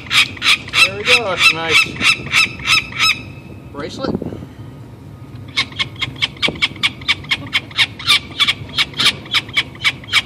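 A young bird shrieks loudly and repeatedly, close by.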